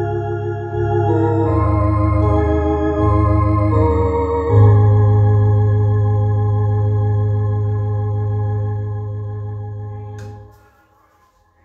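An electronic organ plays sustained chords that ring out and fade.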